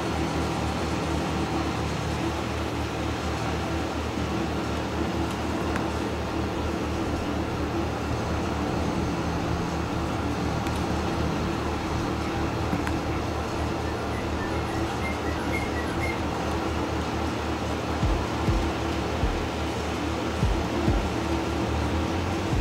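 A tractor engine rumbles steadily at idle.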